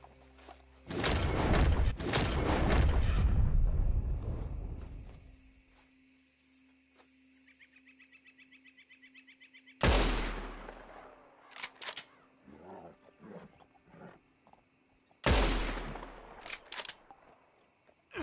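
Loud gunshots ring out and echo across open country.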